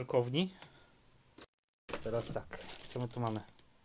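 A game controller is lifted out of a cardboard box with a soft scrape.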